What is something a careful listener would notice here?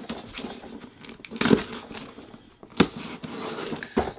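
A blade slices through packing tape on a cardboard box.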